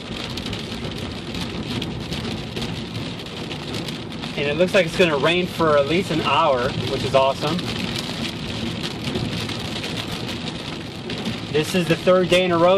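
A car drives along a wet road with a steady hiss of tyres.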